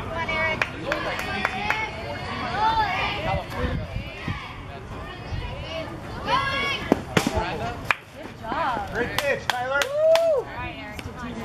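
Girls and women shout and cheer outdoors from a distance.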